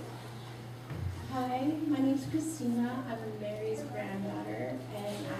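A woman speaks calmly into a microphone over loudspeakers in an echoing hall.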